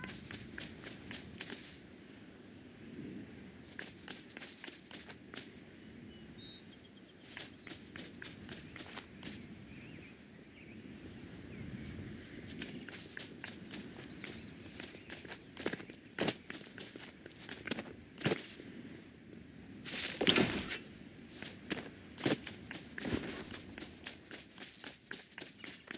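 Quick footsteps patter on grass.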